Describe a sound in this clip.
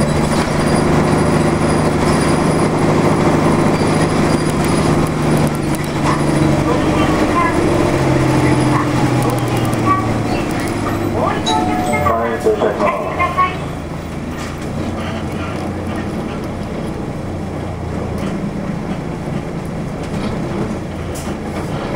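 A vehicle's engine hums steadily from inside as it drives along a road.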